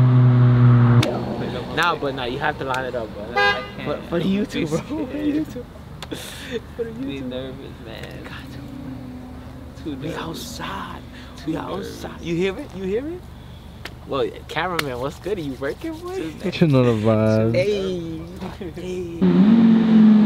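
Young men talk and laugh with animation close by.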